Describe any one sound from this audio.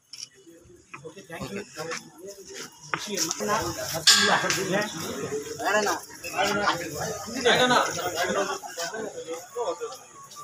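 Several men talk at once nearby in a lively crowd.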